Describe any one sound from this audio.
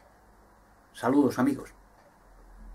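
A man speaks briefly and calmly, close to the microphone.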